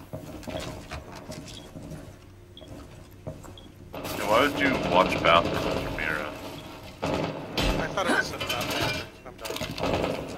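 A heavy metal shield clanks as it is set down and picked up.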